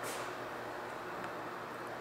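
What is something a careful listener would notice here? A ceiling fan whirs softly.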